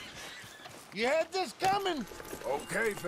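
A horse whinnies loudly nearby.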